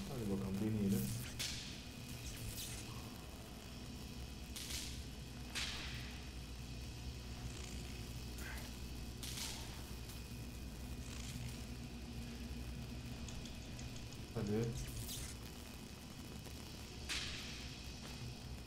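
Electricity zaps and crackles in sharp bursts.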